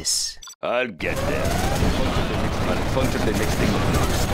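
Tank guns fire and shells explode in a battle.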